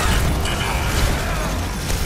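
Electric energy crackles and buzzes.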